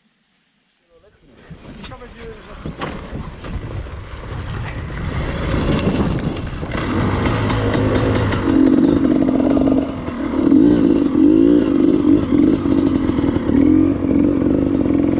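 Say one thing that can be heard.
A dirt bike engine roars and revs as it rides over rough ground.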